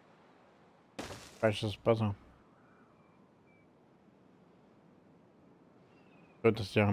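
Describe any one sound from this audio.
A man speaks briefly into a close microphone, in short bursts.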